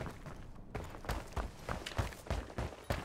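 Heavy boots thud steadily on a hard floor.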